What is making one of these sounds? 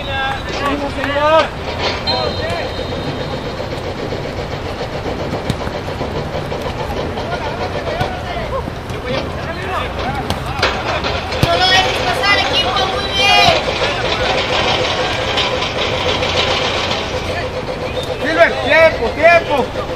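Men shout and call out across an open playing field.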